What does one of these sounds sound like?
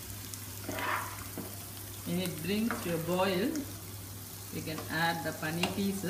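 A ladle clinks as it stirs a curry in an aluminium pressure cooker.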